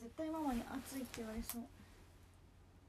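A young woman speaks close by, briefly and brightly.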